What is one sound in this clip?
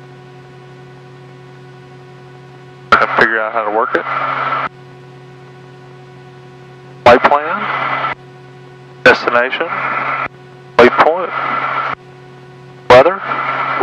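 A finger presses buttons on an avionics panel.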